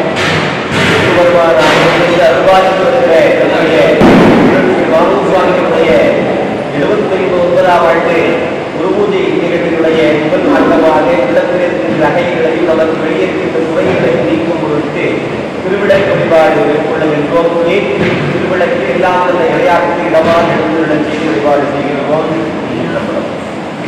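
Several men chant together in a steady rhythmic recitation, close by.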